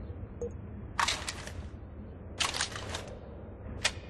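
A rifle's parts rattle and click as it is handled.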